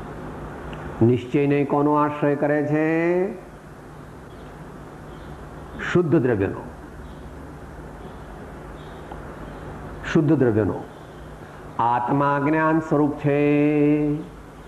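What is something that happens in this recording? An elderly man chants in a sustained, singing voice close by, with pauses between phrases.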